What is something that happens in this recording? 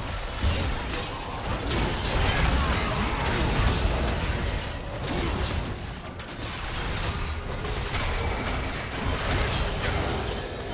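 Video game spells whoosh, crackle and burst during a battle.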